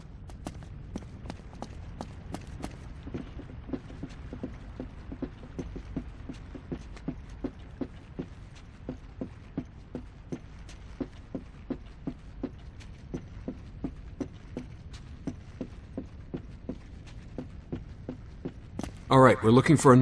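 Footsteps thud steadily on stone steps.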